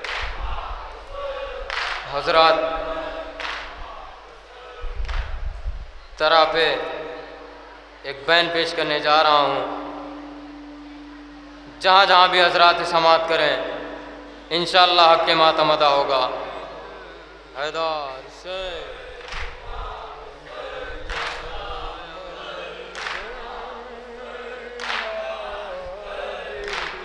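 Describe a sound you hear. Young men chant a lament together through a microphone in a reverberant hall.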